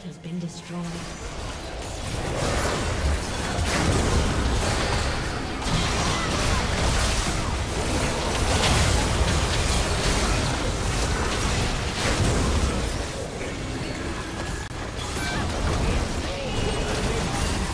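Magic spells crackle and burst in a fast battle.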